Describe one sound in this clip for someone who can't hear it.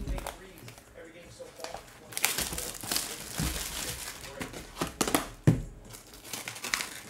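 Plastic wrap crinkles and tears as a box is opened.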